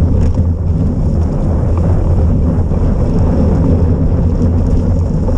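Wind buffets loudly past close by outdoors.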